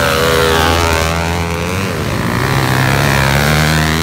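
A motorcycle engine revs as the bike pulls away.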